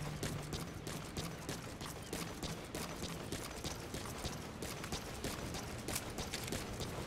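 Boots run quickly across a hard metal deck.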